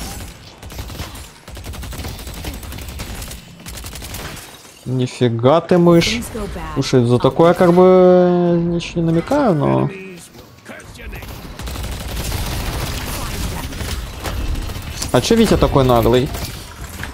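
Game gunshots crackle rapidly.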